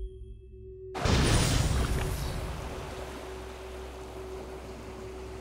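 Water splashes and rushes loudly, then settles into a steady wash.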